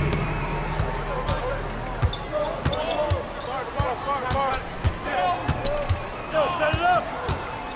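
A basketball bounces with dull thumps on the floor.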